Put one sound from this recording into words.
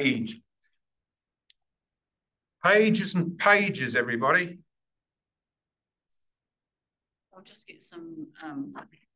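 A man speaks calmly nearby, with pauses between phrases.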